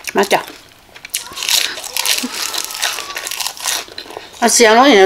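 Crisp vegetables crunch loudly as a young woman chews.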